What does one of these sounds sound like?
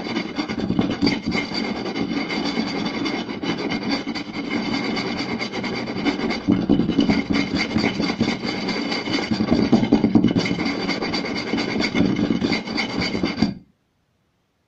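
Fingertips rapidly tap and drum on a wooden board.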